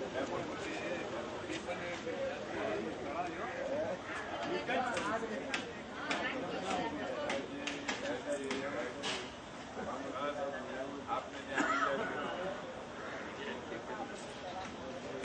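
Several men talk and greet each other nearby outdoors, their voices overlapping.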